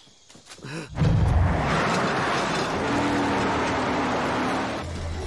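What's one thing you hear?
A heavy truck engine roars and rumbles.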